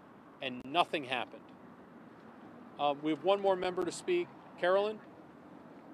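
A man speaks calmly into microphones close by, outdoors.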